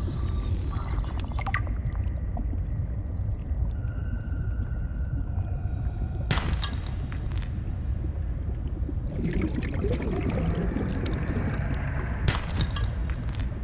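A deep underwater rumble drones steadily.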